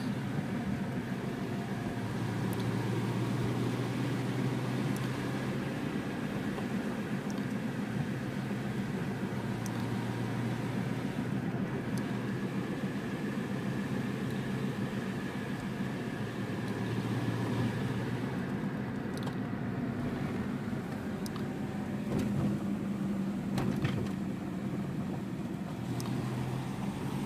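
A car engine hums steadily from inside the car as it drives along a road.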